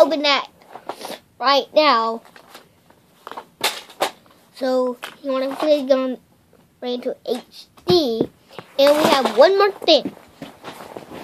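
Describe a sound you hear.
A young boy talks excitedly, close up.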